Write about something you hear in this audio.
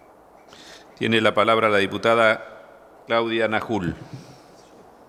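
A middle-aged man speaks briefly through a microphone in a large hall.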